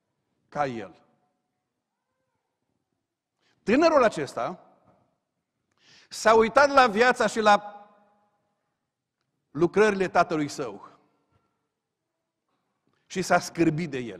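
A middle-aged man speaks with animation through a microphone, in short phrases with pauses.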